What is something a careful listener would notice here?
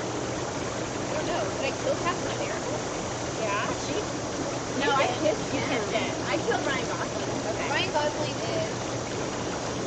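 Young women talk and laugh close by, outdoors.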